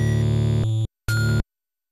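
Chiptune video game music plays, then cuts off abruptly.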